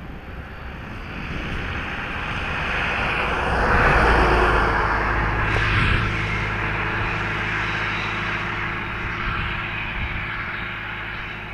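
A truck engine rumbles as it approaches, passes close by and fades away.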